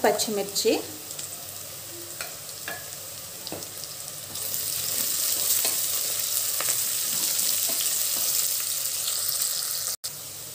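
Vegetables sizzle and crackle in hot oil in a pot.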